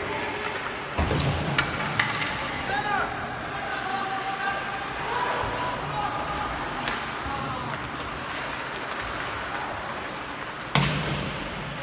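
A puck thuds against the boards.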